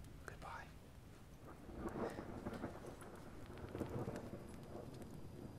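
A young man whispers softly close to a microphone.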